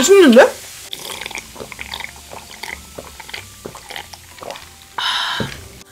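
A young woman gulps a drink.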